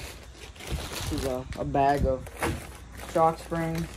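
A paper bag thumps down on a table.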